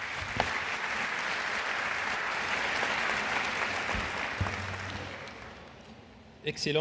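An audience applauds in a large space.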